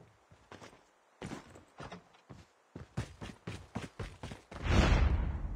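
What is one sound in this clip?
Footsteps thud quickly over the ground.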